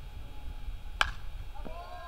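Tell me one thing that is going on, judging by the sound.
A bat cracks sharply against a baseball outdoors.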